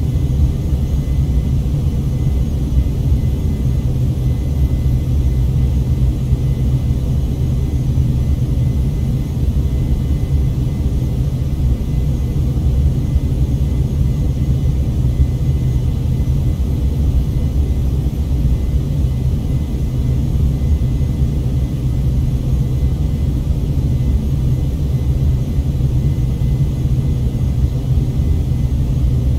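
A jet engine roars with a steady, low drone.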